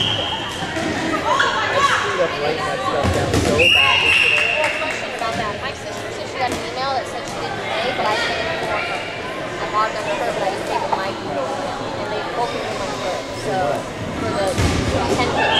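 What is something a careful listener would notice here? Balls bounce and thud on a wooden floor.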